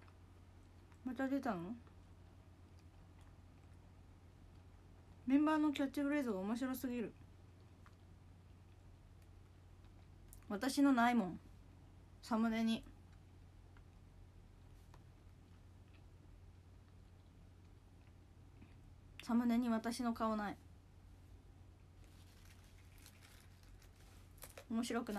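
A young woman speaks close to a microphone in short bursts, with pauses between.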